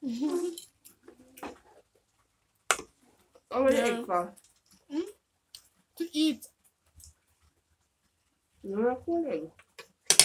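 A woman chews and smacks her lips while eating.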